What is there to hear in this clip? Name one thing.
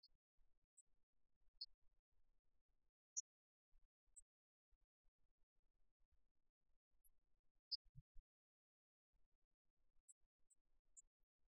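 Rackets strike a shuttlecock back and forth.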